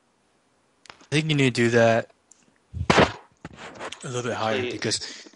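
Another man speaks louder and closer, with animation.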